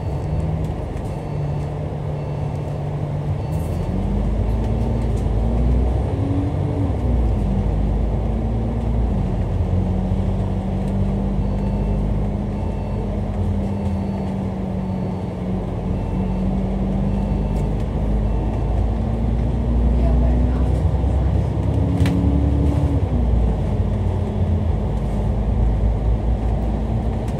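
A bus engine hums and whines as it drives along, rising and falling in pitch.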